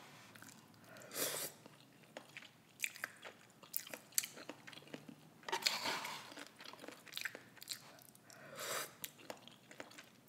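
A woman slurps noodles loudly close to a microphone.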